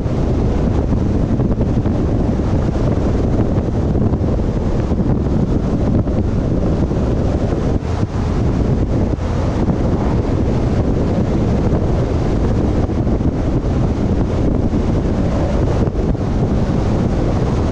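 A vehicle's engine hums steadily while driving.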